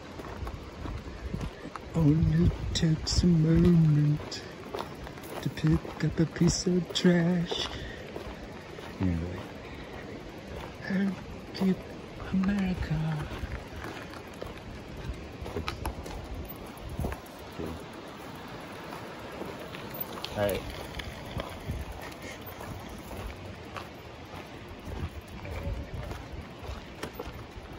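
Bicycle tyres crunch and roll over a gravel path.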